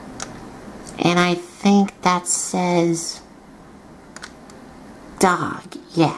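A small plastic toy wheel is turned by hand and rattles faintly.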